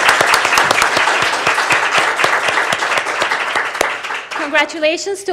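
A crowd applauds in a large room.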